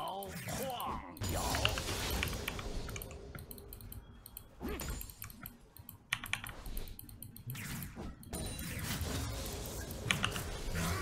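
Swords clash and magic spells burst in a fast game battle.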